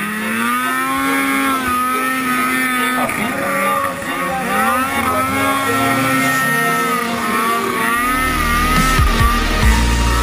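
Snow sprays and hisses under a snowmobile's track.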